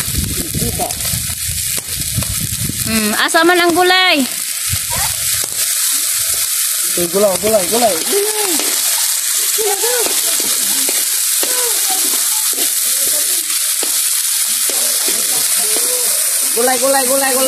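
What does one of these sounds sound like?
Food sizzles steadily in a hot pan outdoors.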